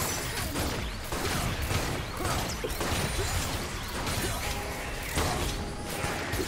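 Spell blasts and hits crackle and thud in a fast game fight.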